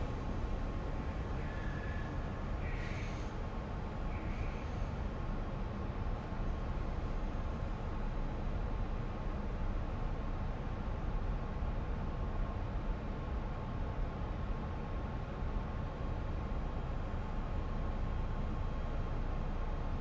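A train rumbles steadily on the tracks.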